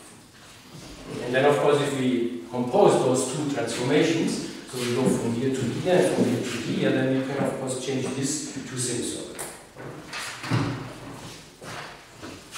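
A man lectures calmly in an echoing room, heard through a microphone.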